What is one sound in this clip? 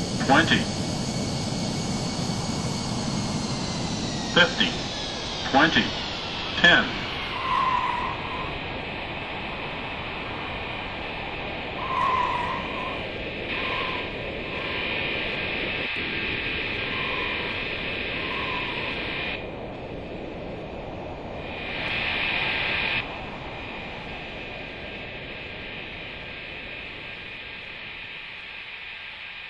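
A jet engine hums and whines steadily.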